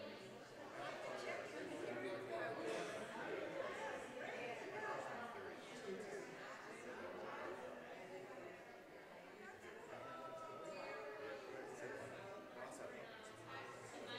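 A woman talks in a large echoing room.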